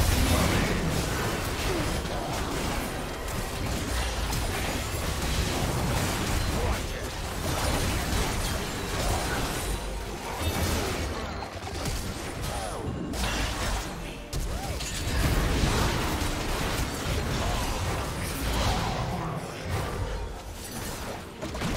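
Game spell effects crackle and blast during a battle.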